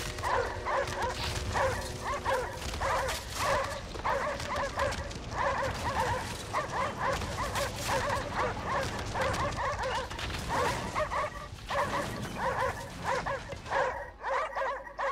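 Strong wind roars across open ice.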